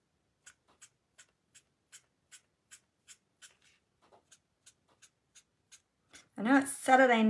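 A marker scratches on paper in short, quick strokes.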